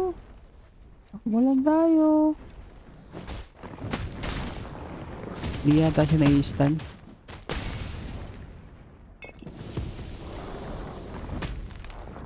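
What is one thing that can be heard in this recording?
Heavy blows thud and crash in a fight with a lumbering creature.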